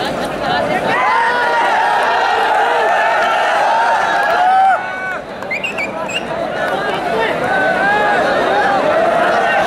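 A large outdoor crowd shouts and cheers loudly.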